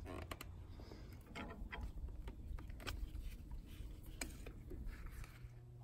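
A metal wrench clicks and scrapes against an oil filter.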